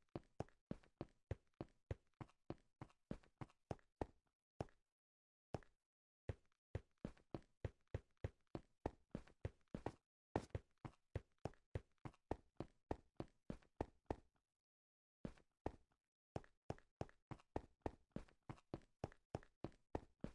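Quick footsteps tap steadily on stone, pausing now and then.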